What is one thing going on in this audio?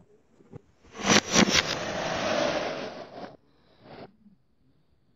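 Wooden blocks slide and knock onto a cardboard lid.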